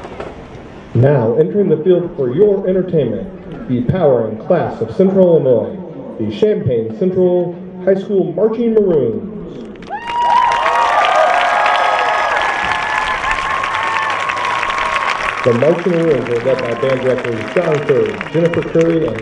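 A marching band plays brass and drums outdoors in a large open space.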